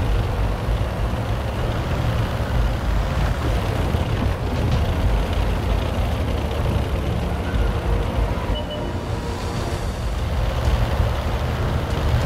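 A tank engine rumbles steadily and deeply.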